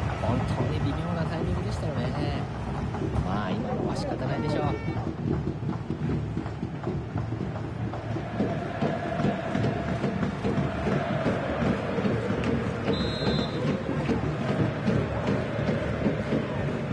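A large stadium crowd cheers and chants steadily.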